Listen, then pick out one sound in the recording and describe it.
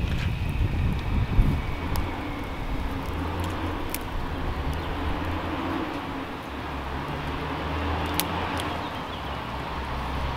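A small wood fire crackles and pops.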